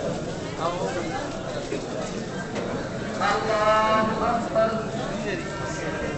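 A large crowd of men murmurs and talks all around.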